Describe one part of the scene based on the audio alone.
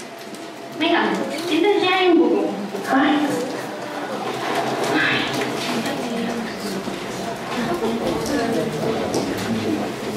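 An audience murmurs and chatters.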